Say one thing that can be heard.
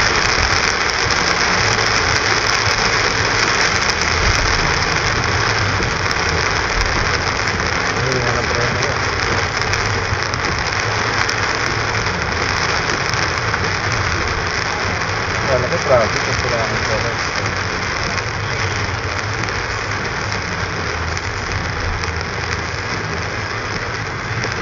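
Heavy rain pounds on a car windshield.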